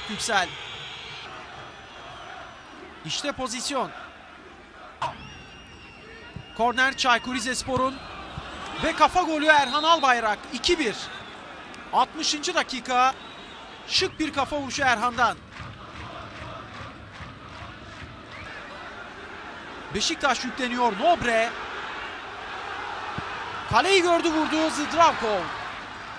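A large stadium crowd murmurs and roars in the background.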